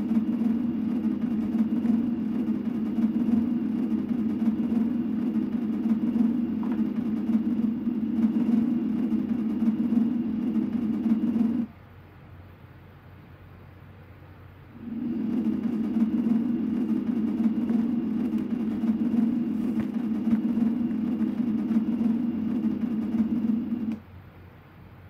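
A low droning tune plays from a television loudspeaker.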